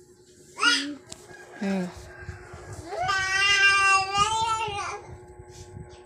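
A young girl talks and squeals playfully close by.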